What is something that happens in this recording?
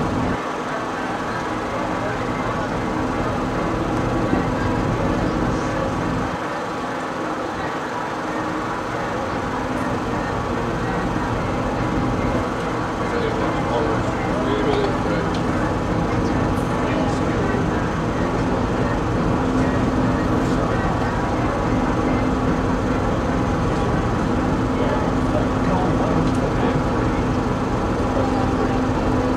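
A boat engine drones steadily close by.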